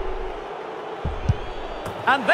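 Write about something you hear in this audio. A football is struck with a thud.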